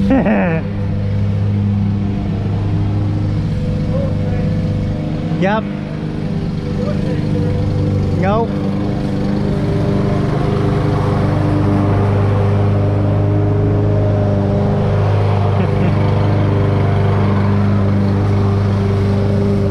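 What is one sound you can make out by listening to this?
A lawn mower engine drones steadily nearby, outdoors.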